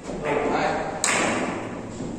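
A cue tip strikes a carom billiard ball.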